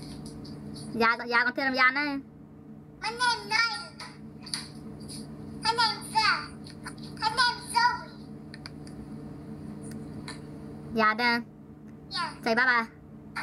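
A young girl talks cheerfully through a phone video call.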